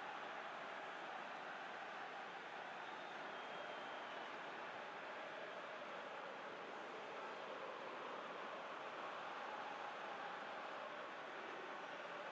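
A large crowd murmurs steadily in the distance.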